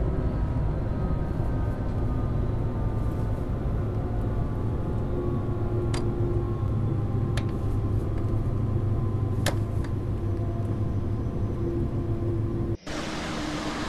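A high-speed electric train rumbles along the track.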